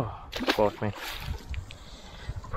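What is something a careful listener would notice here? Water splashes at the surface.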